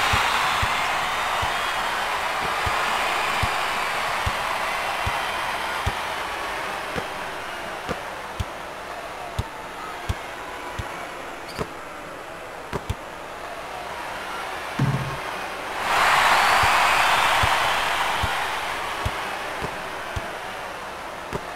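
A basketball bounces in steady dribbles on a hard court.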